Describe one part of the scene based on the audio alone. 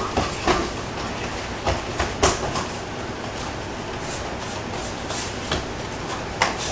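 Kicks thud against padded body protectors.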